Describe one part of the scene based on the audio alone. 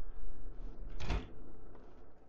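A door handle clicks and a door opens.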